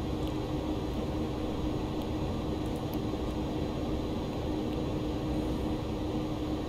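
Aircraft engines drone steadily with a low hum.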